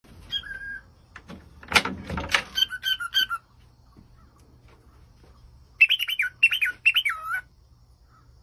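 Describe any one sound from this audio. A cockatiel whistles a short, chirpy tune.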